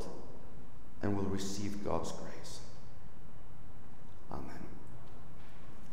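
A middle-aged man speaks calmly through a microphone in a large echoing hall.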